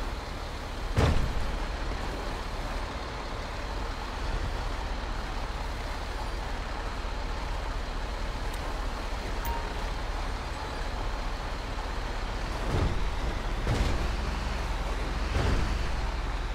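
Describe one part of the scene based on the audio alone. A truck trailer thuds and rattles over bumps.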